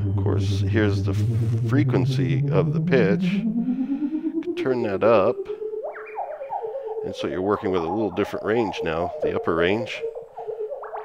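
A synthesizer plays a pulsing, gliding electronic tone that rises in pitch.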